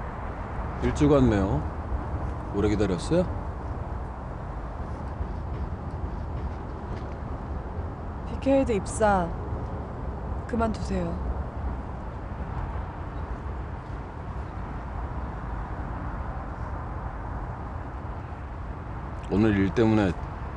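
A young man speaks calmly up close.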